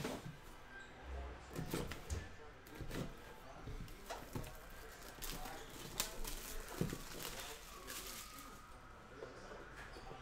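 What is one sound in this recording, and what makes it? Plastic wrapping crinkles and tears as a box is opened.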